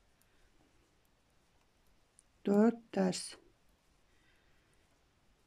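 Knitting needles click softly as yarn is worked.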